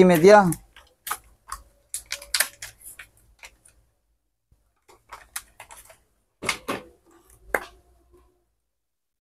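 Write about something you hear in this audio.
Plastic packaging crinkles and rustles as it is handled.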